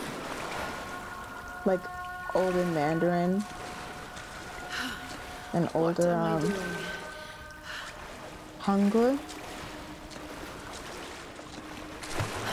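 Water splashes underfoot as someone wades.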